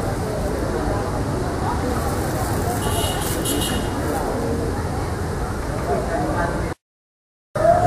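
A crowd of men and women chatters nearby, outdoors.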